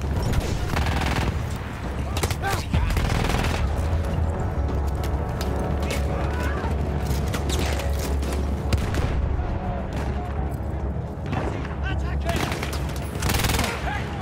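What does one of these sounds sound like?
Shells explode with heavy booms.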